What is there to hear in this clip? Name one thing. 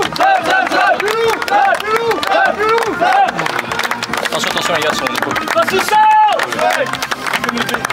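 A group of men chant and cheer outdoors.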